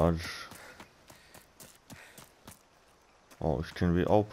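Footsteps thud quickly on a path.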